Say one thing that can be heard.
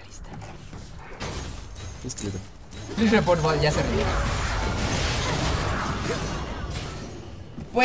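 Game spells and battle effects whoosh and crackle.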